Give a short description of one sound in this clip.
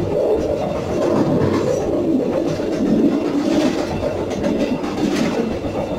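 Train wheels click and clatter over track joints and points.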